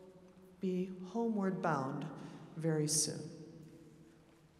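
A choir sings loud closing chords in a large echoing hall.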